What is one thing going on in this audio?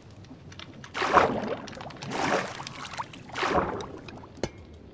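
Water splashes and sloshes in short bursts.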